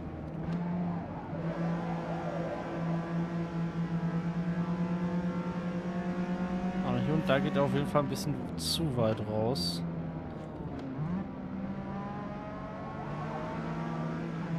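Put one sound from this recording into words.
A car engine drones steadily at high revs.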